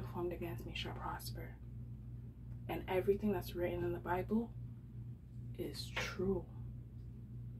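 A young woman speaks calmly and close to the microphone, in short bursts with pauses.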